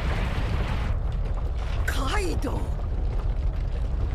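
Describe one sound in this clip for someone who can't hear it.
A woman shouts angrily.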